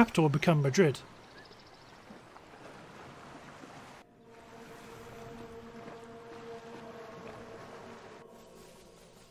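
Sea waves wash softly.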